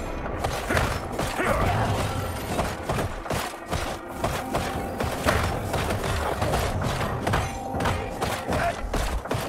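Sword strikes and magic blasts clash rapidly in a game fight.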